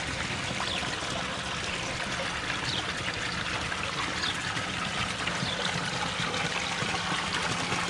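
Water splashes and gurgles steadily as it pours over a ledge.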